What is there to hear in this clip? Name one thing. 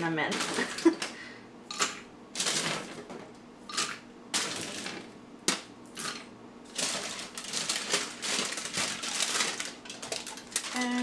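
Almonds clatter as they drop into a blender jar.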